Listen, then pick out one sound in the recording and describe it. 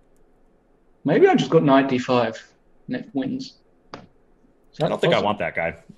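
A man talks with animation over a webcam microphone.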